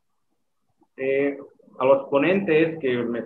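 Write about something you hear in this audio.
A middle-aged man speaks calmly, heard through an online call.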